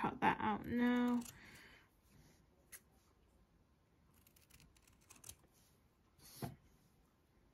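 Scissors snip through soft felt.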